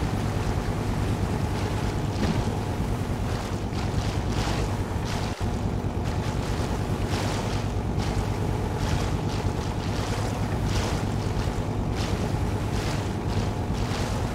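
Water splashes against a boat hull.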